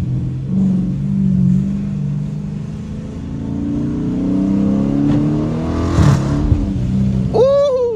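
A V8 muscle car engine rumbles from inside the cabin as the car accelerates.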